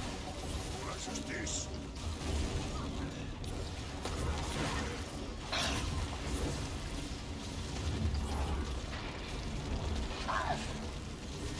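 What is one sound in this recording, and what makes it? Keys on a keyboard click and clatter.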